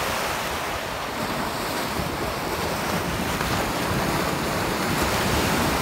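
Small waves wash up and hiss over sand.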